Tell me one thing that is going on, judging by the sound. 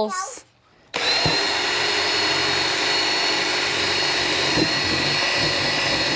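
A power drill whirs steadily, drilling into plastic.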